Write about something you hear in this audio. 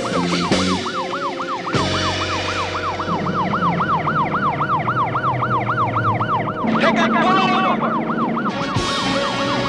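A siren wails up and down rapidly and steadily.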